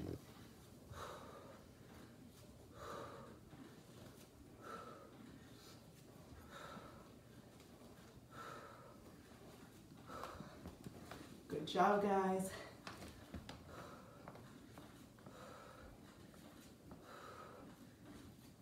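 A woman breathes out hard in short, even puffs.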